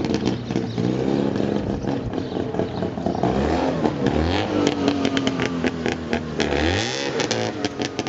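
A small car engine revs hard with a rattling buzz, rising and falling in pitch.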